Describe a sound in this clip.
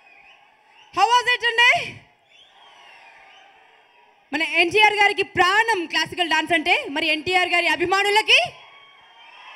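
A woman sings into a microphone over loudspeakers in a large hall.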